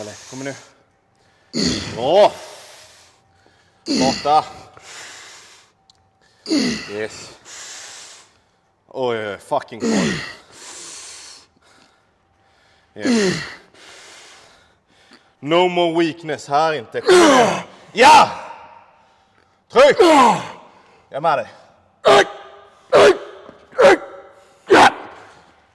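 A man shouts loud encouragement close by, in short bursts.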